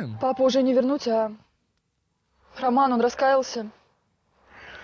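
A young woman speaks calmly in short phrases.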